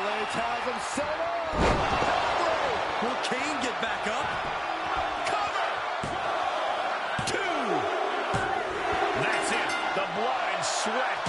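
A large crowd cheers and whistles loudly throughout.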